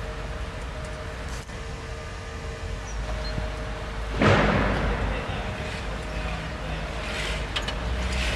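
A crane's motor hums steadily outdoors.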